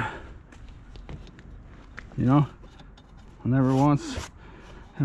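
A metal radiator knocks and scrapes lightly as it is lifted.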